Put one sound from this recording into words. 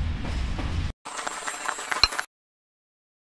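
Applause rings out briefly.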